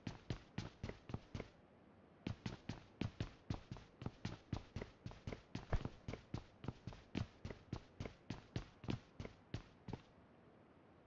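Quick footsteps thud on a hard floor as a game character runs.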